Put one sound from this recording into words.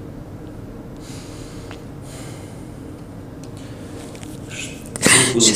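A woman sniffles and breathes shakily, close to a microphone.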